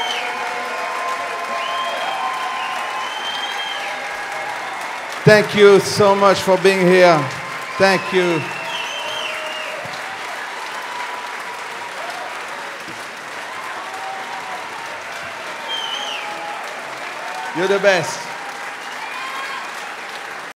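Audience members whistle shrilly.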